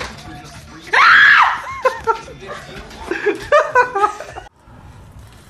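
A young person screams in fright.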